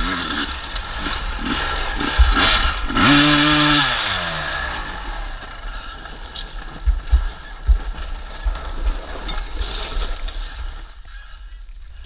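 A dirt bike engine roars and revs up close.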